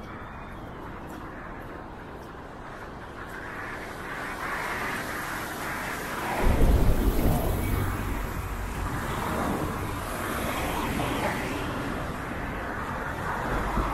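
Tyres hiss on a wet road as cars drive past.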